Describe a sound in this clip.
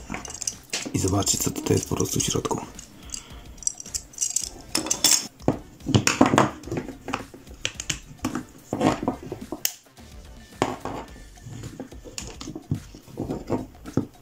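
Plastic parts click and rattle as they are handled.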